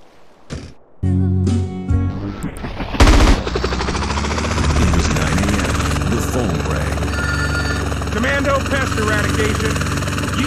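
A helicopter engine starts and roars steadily with whirring rotor blades.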